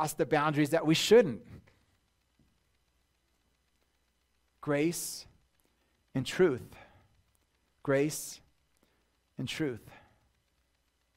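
A man speaks into a microphone in short, measured phrases with pauses between them.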